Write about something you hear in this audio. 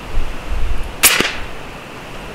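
An air rifle fires with a sharp pop.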